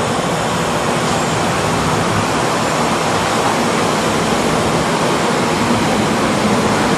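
A train rumbles past on the tracks close by.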